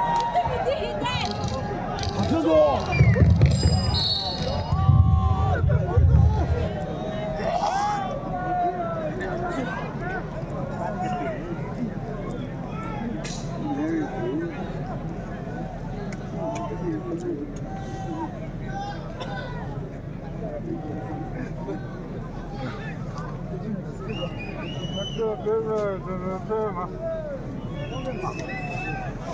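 A crowd chatters and calls out in a large open space.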